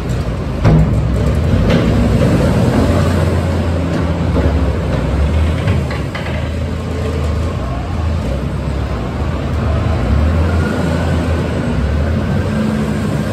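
Beets clatter and rumble into a loader bucket.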